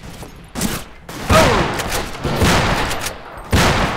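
A pistol fires with a loud bang.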